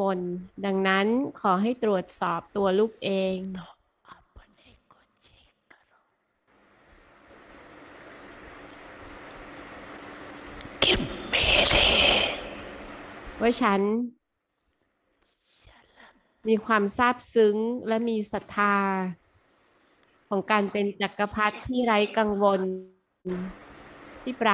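An elderly woman speaks calmly into a microphone, with pauses.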